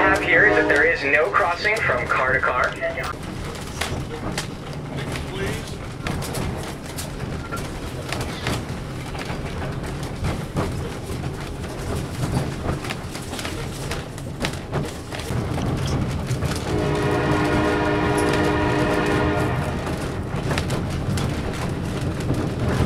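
A train rumbles steadily along a track.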